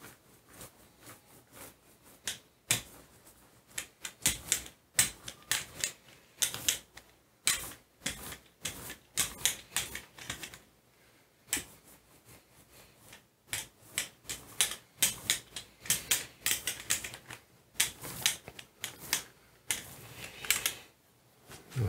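A paint roller rolls back and forth over paper with a soft, sticky crackle.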